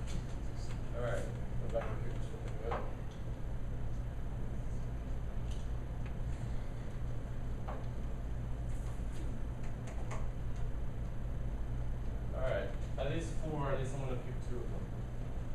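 A young man speaks calmly in a room.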